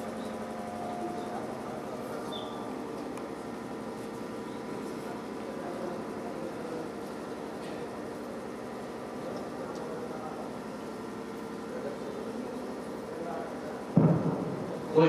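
A man recites a prayer through a loudspeaker in a calm, chanting voice.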